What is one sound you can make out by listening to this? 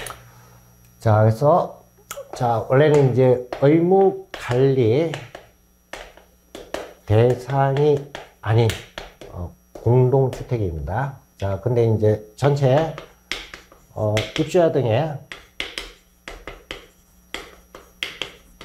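A middle-aged man speaks calmly into a close microphone, explaining.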